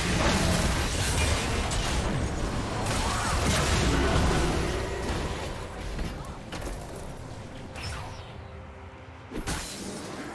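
Video game spell effects whoosh and crackle in a fight.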